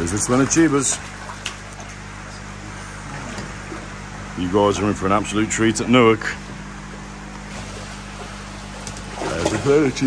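Water splashes as fish thrash in a net.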